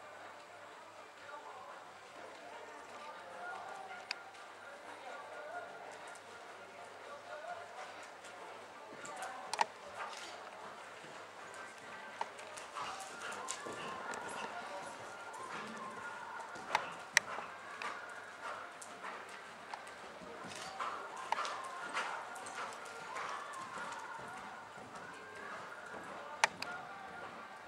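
A horse trots with soft, muffled hoof thuds on sand.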